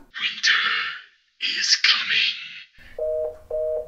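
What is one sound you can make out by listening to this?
A young woman whispers into a mobile phone.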